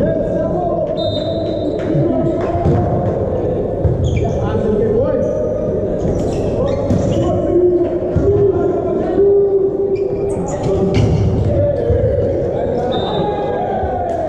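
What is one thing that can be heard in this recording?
Sneakers squeak on an indoor court floor.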